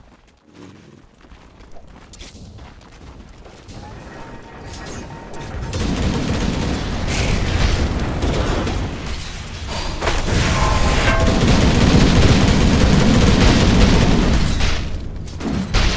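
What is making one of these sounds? Blades clash and strike in quick succession.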